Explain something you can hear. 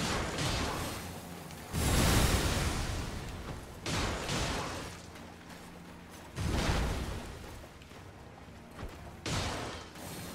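Metal weapons clang and strike.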